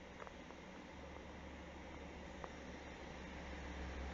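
A train approaches in the distance with a low rumble that slowly grows louder.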